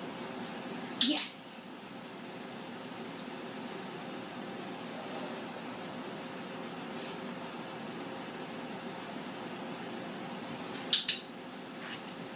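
A hand-held clicker clicks sharply twice.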